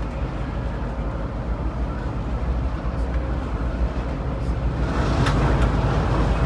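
A vehicle's engine rumbles steadily from inside the cab.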